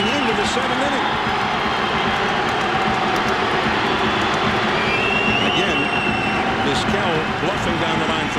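A large crowd roars and murmurs steadily in an open stadium.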